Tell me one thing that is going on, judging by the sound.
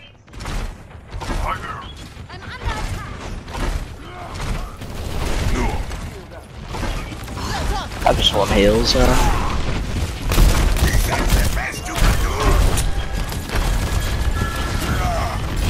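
Rapid gunshots and energy blasts crackle and thump.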